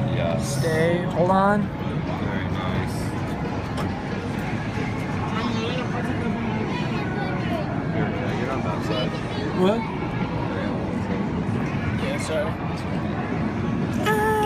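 Arcade machines play electronic tunes and chimes throughout a noisy hall.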